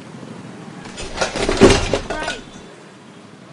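A plastic bin lid clatters open.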